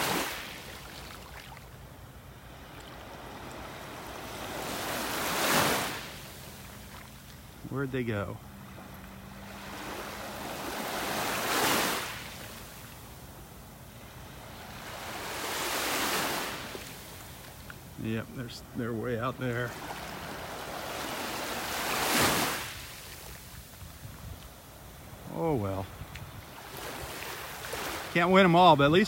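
Small waves wash gently onto the shore in slow, regular surges.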